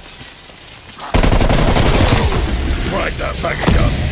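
A weapon gives off a loud crackling energy blast.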